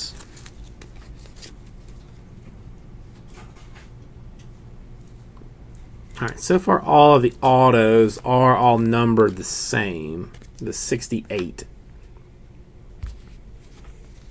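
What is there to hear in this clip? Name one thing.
Trading cards rustle and click softly as a hand shuffles them.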